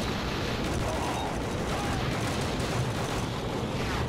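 A bolt-action rifle fires in a video game.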